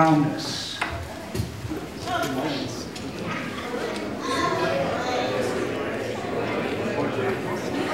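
A crowd of men and women chat and greet each other in a room with some echo.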